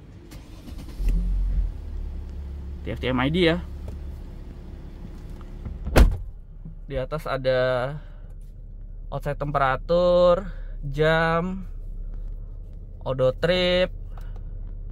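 A car engine starts, revs briefly and settles into a low, steady idle.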